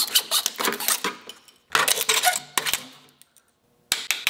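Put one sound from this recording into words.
A hacksaw rasps quickly back and forth through wood.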